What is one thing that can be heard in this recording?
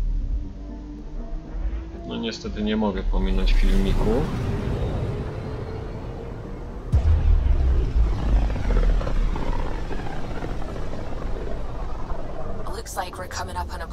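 A spacecraft engine rumbles deeply and steadily.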